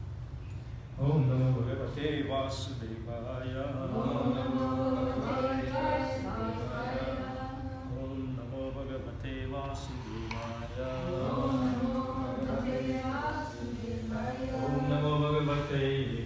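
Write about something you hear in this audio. A man sings steadily into a microphone.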